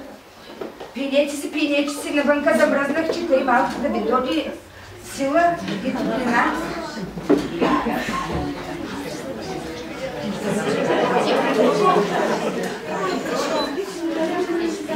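A group of young children chant together in unison.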